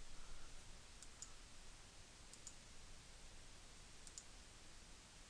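A mouse button clicks a few times.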